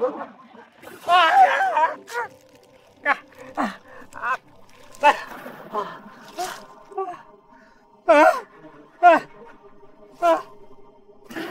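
A man groans and gasps in pain.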